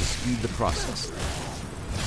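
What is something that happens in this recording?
An axe strikes flesh with a wet chop.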